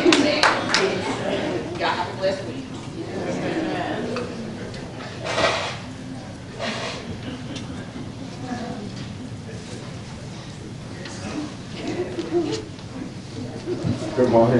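A crowd murmurs quietly.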